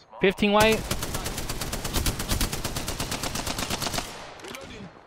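Rapid gunshots fire in a burst.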